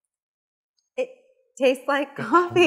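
A woman speaks cheerfully, close by.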